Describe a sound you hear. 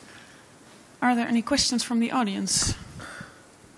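A young woman asks a question into a microphone.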